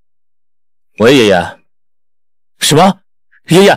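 A young man talks on a phone.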